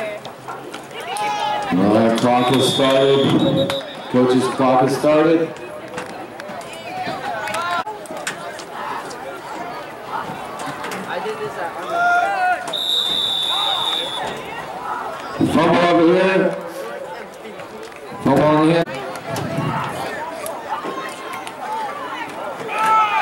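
Spectators cheer and call out across an open field.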